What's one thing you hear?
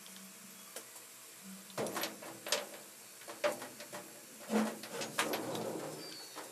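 A screwdriver scrapes and clicks against a metal screw.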